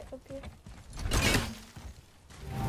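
An axe smashes through something with a loud crash.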